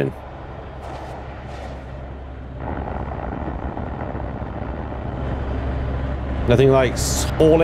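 A spaceship engine hums low and steady, growing louder.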